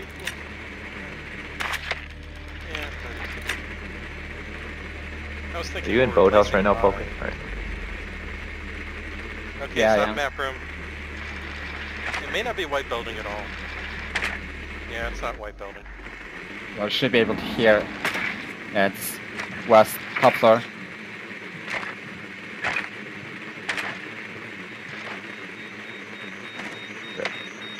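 A small remote-controlled drone whirs as it rolls across hard floors.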